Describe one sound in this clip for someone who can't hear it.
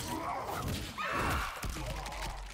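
Fire roars and crackles in a burst.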